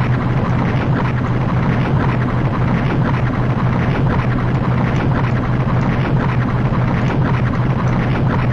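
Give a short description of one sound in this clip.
A ship's engine drones steadily.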